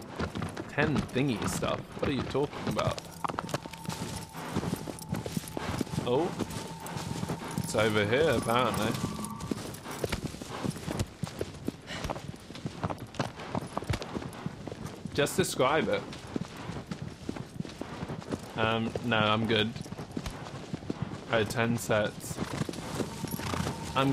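Hooves thud rapidly as a horse gallops.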